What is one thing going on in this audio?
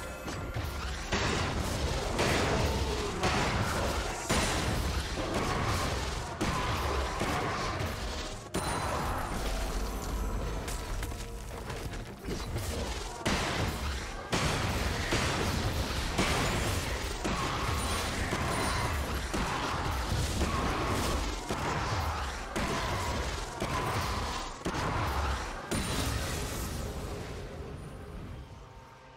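Game sound effects of spells and attacks crackle and whoosh.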